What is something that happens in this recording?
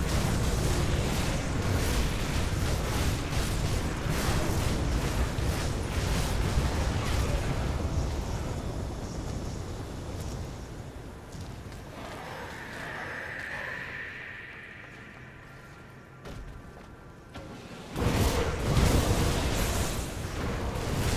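Blows and impacts crack repeatedly during a battle.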